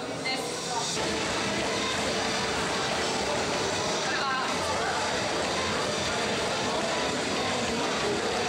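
Treadmill belts hum and thud steadily under running feet.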